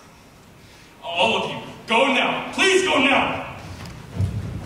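Several voices cry out loudly together in a large echoing hall.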